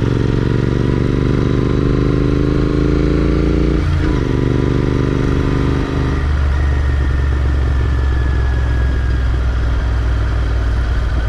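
Wind rushes past a moving rider.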